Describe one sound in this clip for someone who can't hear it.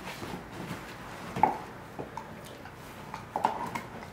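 A dog gnaws and chews on a bone close by.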